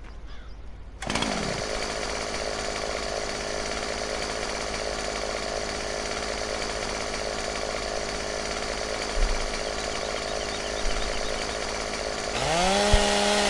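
A chainsaw engine starts and runs with a steady, buzzing idle.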